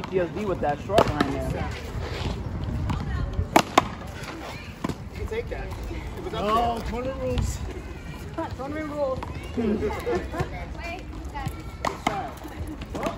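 A paddle strikes a ball with sharp pops.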